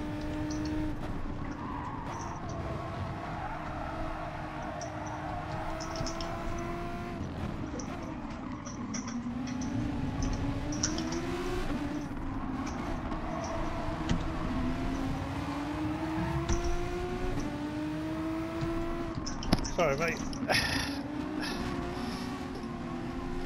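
A racing car engine revs and drones, rising and falling as gears shift.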